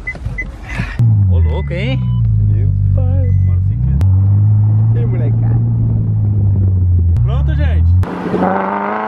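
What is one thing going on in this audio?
A car engine rumbles and revs loudly.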